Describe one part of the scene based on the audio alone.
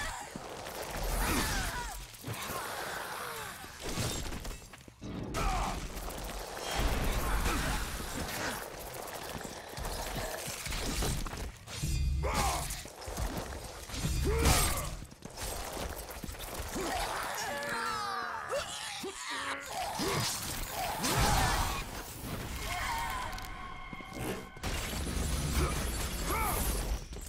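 Chained blades whoosh and strike a giant serpent in a video game fight.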